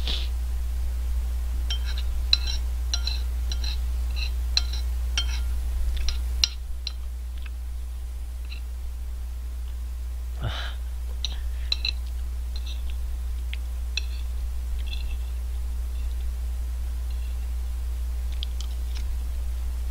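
A spoon and fork clink against a plate.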